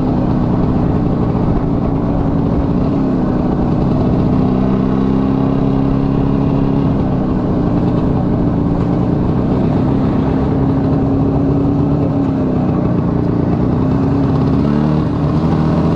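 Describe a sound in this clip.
A motorcycle engine hums steadily close by, its pitch rising and falling with the throttle.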